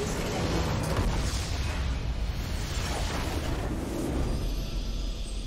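A game structure explodes with a deep rumbling boom.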